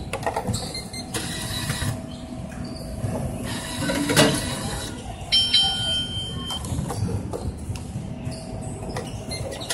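A plastic bottle clatters into a machine's opening.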